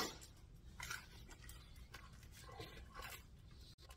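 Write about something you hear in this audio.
A man bites into and chews crunchy food close by.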